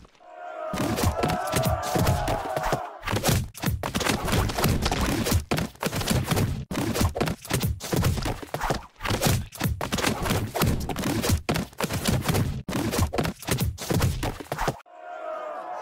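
Rapid popping and splatting sounds burst out as two game crowds clash.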